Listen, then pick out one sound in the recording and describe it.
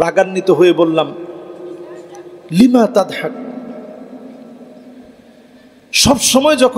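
A man preaches with animation into a microphone through loudspeakers, his voice echoing.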